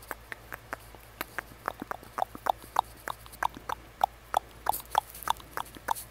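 Fingers make quick, soft clicking and popping sounds very close by, over and over.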